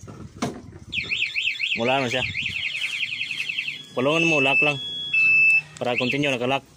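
A scooter alarm chirps in rapid warbling pulses, then gives short beeps.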